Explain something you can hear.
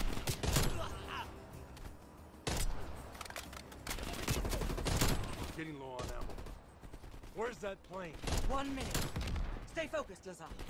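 A rifle fires single loud shots that echo.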